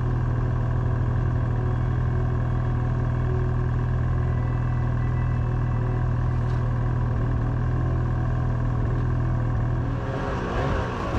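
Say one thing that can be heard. A snowmobile engine idles with a steady low rumble.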